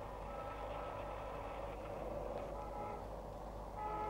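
A car door opens.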